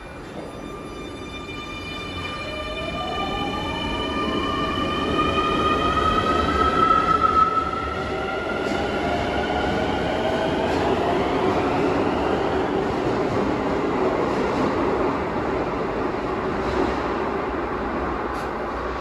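An electric subway train's wheels rumble on the rails.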